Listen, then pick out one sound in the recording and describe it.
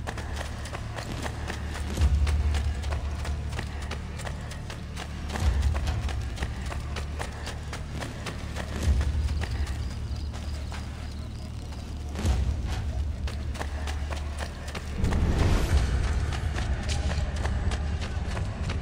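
Quick footsteps run on stone steps.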